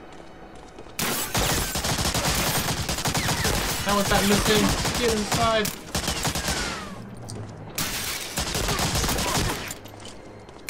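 A gun fires in rapid bursts close by.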